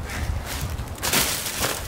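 Plastic mailing bags rustle and crinkle as they are carried.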